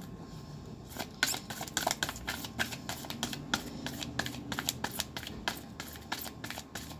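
Cards flick and slap as they are shuffled by hand.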